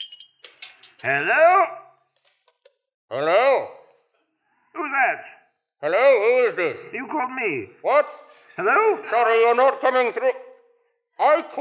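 A man makes warbling, sliding calls into his cupped hands close to a microphone.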